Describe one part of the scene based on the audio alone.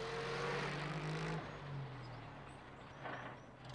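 A small van's engine hums as the van drives away.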